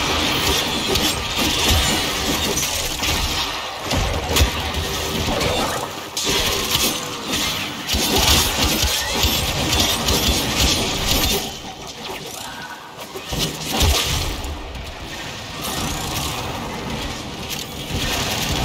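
Game explosions and impacts thump loudly.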